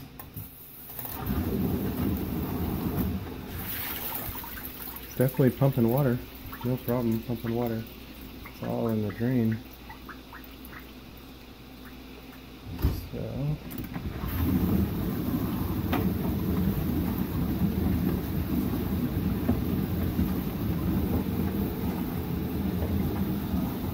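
A dishwasher dial clicks as it is turned.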